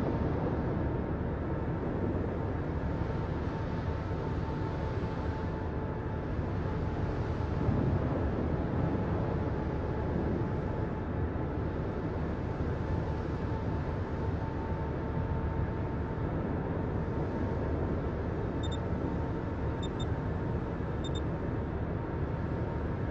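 A battleship's engines rumble low as it sails.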